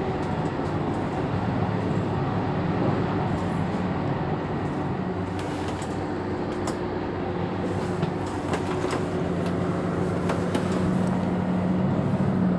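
A bus engine idles nearby with a low steady rumble.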